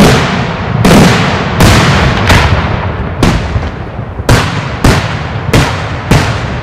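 Fireworks burst overhead in loud, rapid booms.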